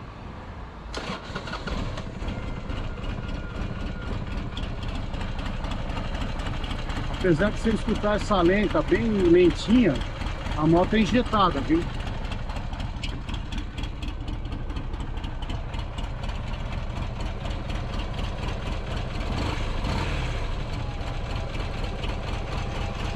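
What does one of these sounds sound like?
A motorcycle engine idles with a steady, low rumble.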